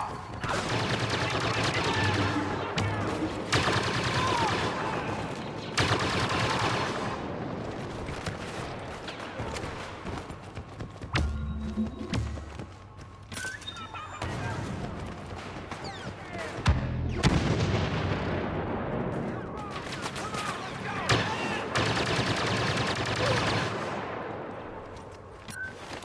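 Blaster fire crackles in rapid bursts.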